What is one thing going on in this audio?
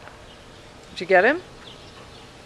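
A dog gives a short, high yelp close by.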